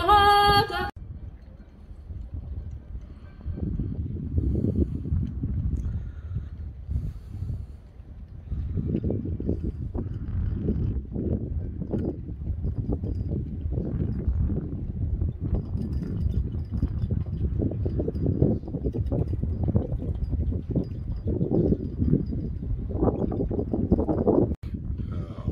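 Wind blows in gusts, rumbling against the microphone outdoors.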